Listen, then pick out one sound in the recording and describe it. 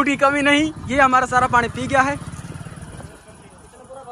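A motorcycle engine idles.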